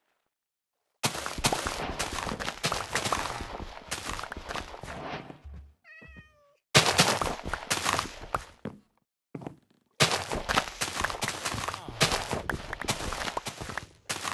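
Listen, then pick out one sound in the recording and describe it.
Plants are torn up with quick crunching and rustling sounds.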